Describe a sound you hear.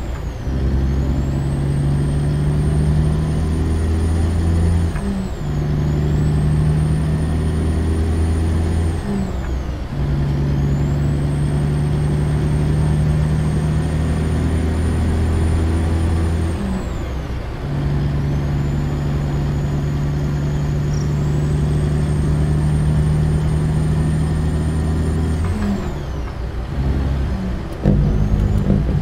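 A heavy truck engine drones steadily, rising in pitch and dropping briefly at each gear change.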